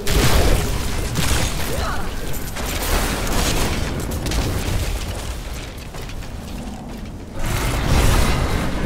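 Monsters growl and shriek.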